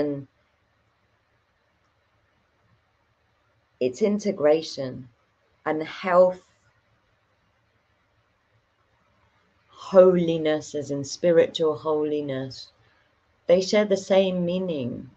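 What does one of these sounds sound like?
A young woman speaks calmly and close to a microphone, in short bursts with pauses.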